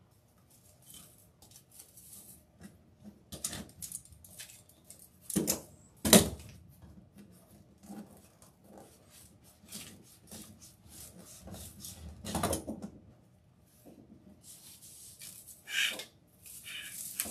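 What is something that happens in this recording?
Stiff mesh ribbon rustles and crinkles as hands fold and bunch it.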